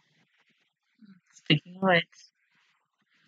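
A young woman laughs briefly.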